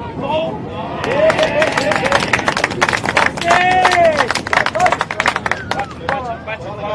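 A crowd of spectators cheers and claps outdoors.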